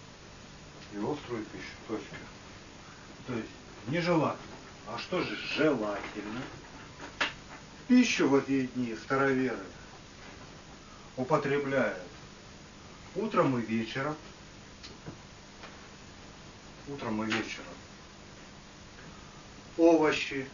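A man reads aloud from a book in a slow, measured voice, with pauses between phrases.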